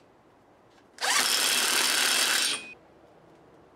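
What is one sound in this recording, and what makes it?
A power drill whirs loudly in a short burst.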